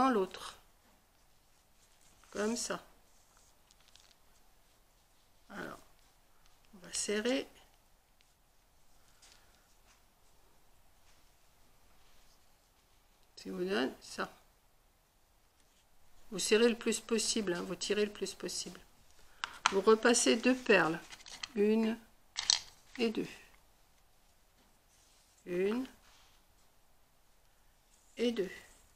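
An elderly woman talks calmly close by, in short bursts.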